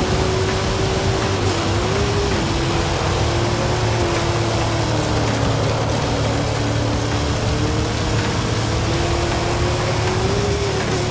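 Tyres rumble and crunch over gravel.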